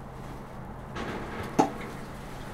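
Straw rustles close by.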